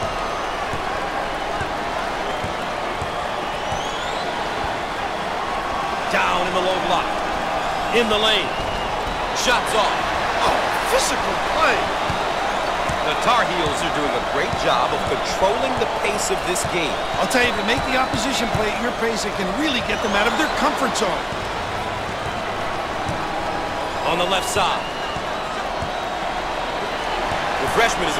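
A large crowd murmurs and cheers steadily in a big echoing arena.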